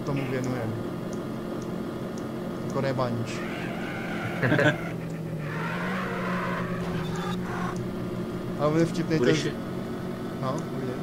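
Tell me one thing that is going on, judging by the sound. A car engine hums steadily, its pitch rising and falling as the car speeds up and slows down.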